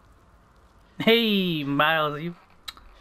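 A young man speaks loudly with a drawn-out, questioning tone.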